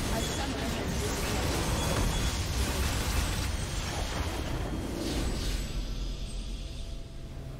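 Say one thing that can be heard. A huge explosion roars and crackles.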